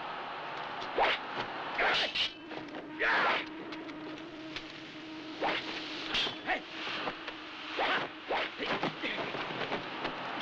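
Swords clash and clang in sharp, quick strikes.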